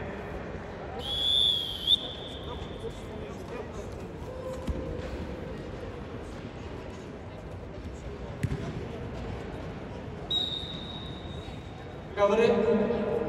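A referee blows a sharp whistle in a large echoing hall.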